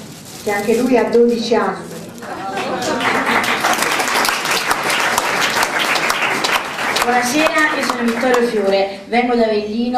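A boy speaks into a microphone over a loudspeaker in an echoing hall.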